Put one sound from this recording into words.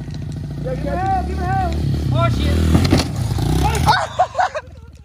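A dirt bike engine revs loudly close by.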